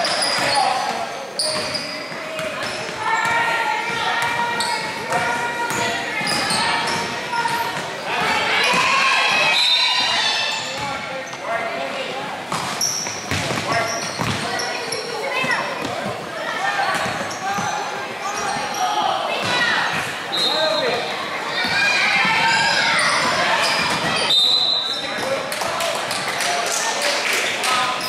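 Children and adults in a crowd shout and cheer with animation in an echoing gym.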